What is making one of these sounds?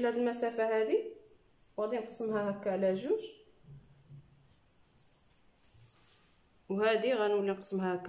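Hands rub and smooth woven fabric on a table.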